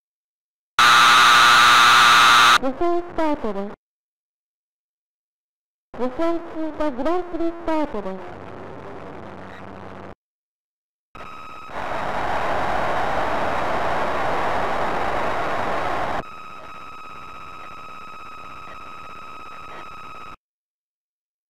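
An arcade game plays short electronic sound effects with warbling tones.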